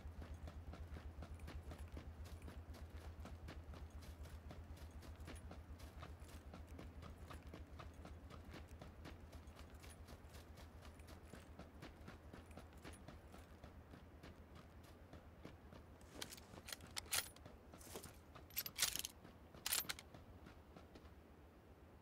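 Quick, steady footsteps rustle through dry grass.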